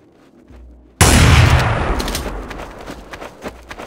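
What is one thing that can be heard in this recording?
A rifle fires a single loud shot that echoes and fades away.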